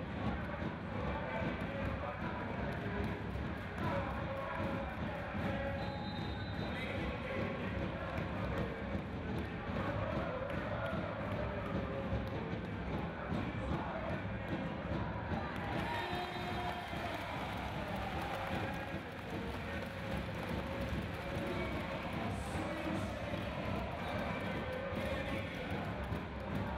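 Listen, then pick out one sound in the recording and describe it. A large crowd cheers and chatters in an echoing arena.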